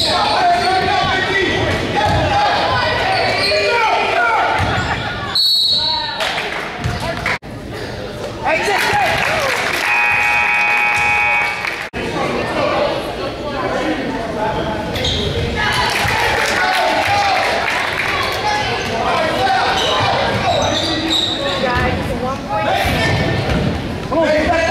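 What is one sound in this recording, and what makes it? Sneakers squeak on a wooden gym floor.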